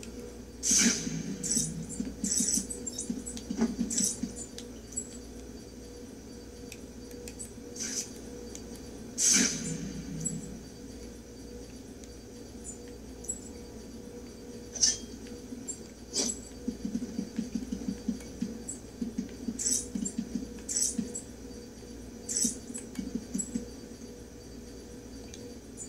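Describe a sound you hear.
Video game sound effects play from a television loudspeaker.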